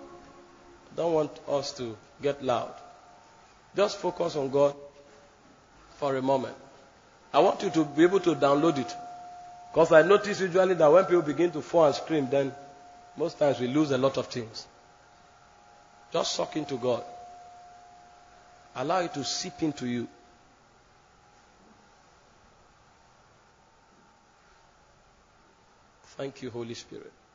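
A man preaches forcefully through a microphone in short bursts with pauses.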